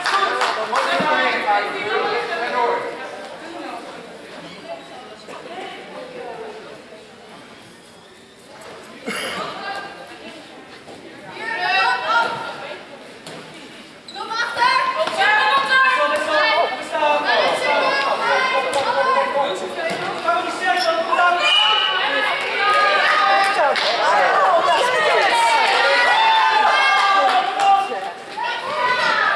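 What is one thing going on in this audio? Young girls shout and call out to each other in a large echoing hall.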